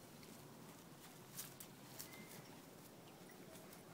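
A horse's hooves thud softly on grass as it walks away.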